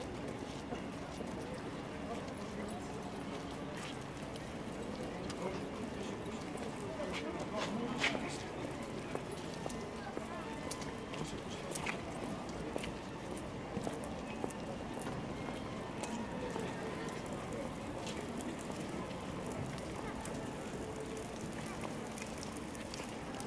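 Footsteps tap on paving stones as people walk past.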